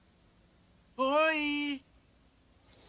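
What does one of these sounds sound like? A high, childlike voice calls out a short cheerful greeting.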